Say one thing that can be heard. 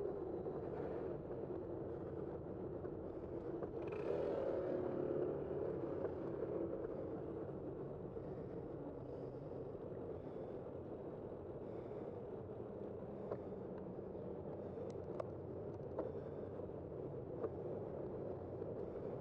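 Wind rushes steadily past while riding outdoors.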